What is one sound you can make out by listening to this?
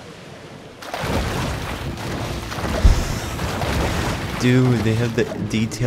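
Water splashes loudly as a shark leaps out and crashes back down.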